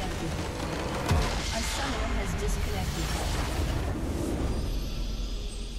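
A game's crystal structure explodes with a loud magical burst and rumble.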